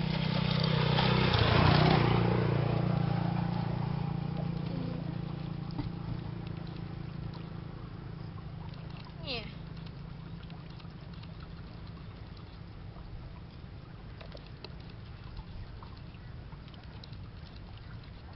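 Hands rummage and splash in a basin of water.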